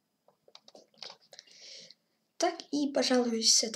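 A young boy speaks with animation, close to a microphone.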